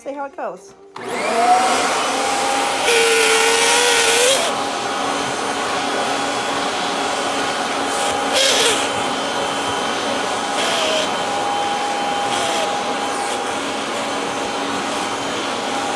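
A vacuum cleaner switches on and runs with a steady whine.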